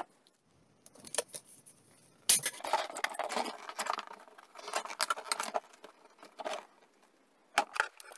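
Stiff paper rustles and crinkles as it is handled.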